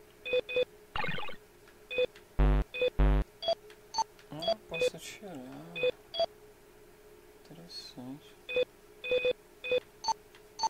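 Short electronic menu beeps sound again and again as selections change.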